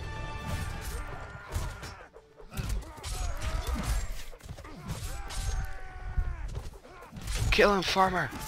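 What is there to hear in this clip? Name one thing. Swords clash and clang in a close fight.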